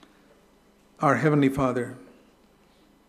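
An elderly man speaks calmly and briefly into a microphone, reading out.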